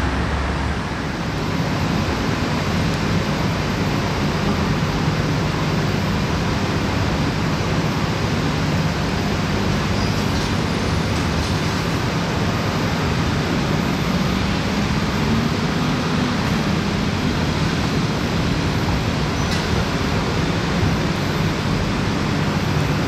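A bus engine hums steadily as a bus approaches slowly.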